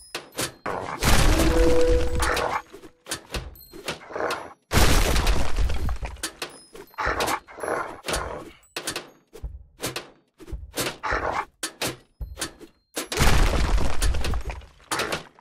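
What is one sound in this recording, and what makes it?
Stone walls crumble and crash down with heavy rumbling.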